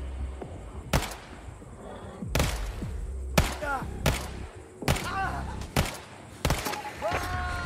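Pistols fire sharp shots in quick bursts.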